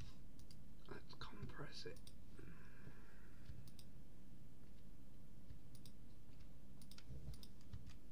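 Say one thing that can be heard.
Short soft clicks sound as items are moved in a game menu.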